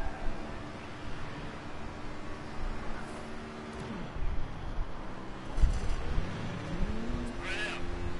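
A truck engine rumbles past.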